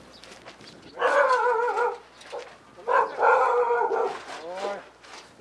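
A man calls out loudly outdoors.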